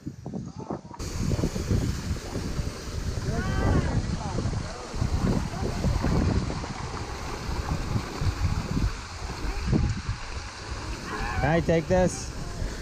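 Water rushes and splashes steadily down slides.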